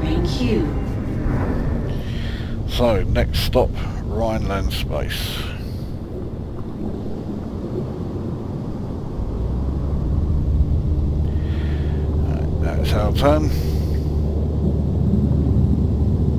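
A spaceship engine hums with a low, steady drone.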